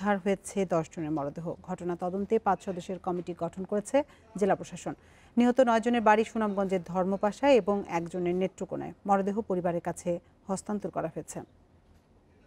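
A young woman reads out news calmly and clearly into a microphone.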